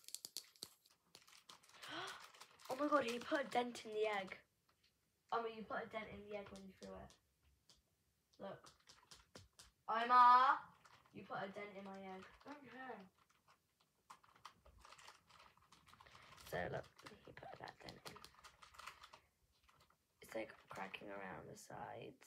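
Chocolate foil crinkles in a girl's hands.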